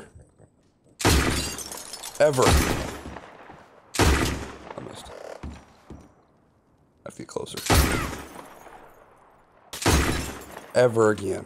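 Revolver shots bang loudly, one after another, with a short echo.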